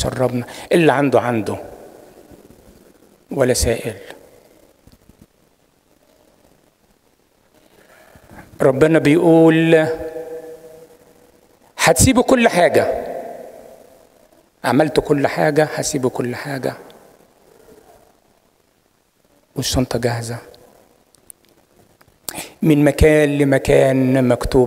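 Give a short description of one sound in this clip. An elderly man speaks with feeling into a microphone, heard through loudspeakers in an echoing room, with pauses between phrases.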